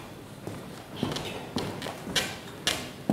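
Footsteps click across a wooden stage in a large hall.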